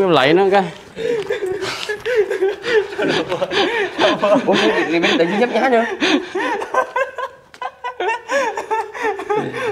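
A young man talks cheerfully and laughs close to a clip-on microphone.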